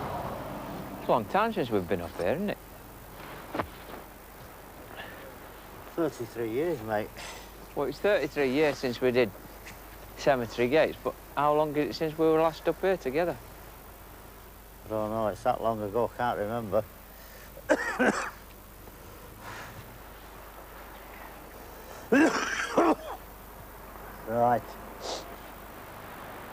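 A second older man speaks back in conversation.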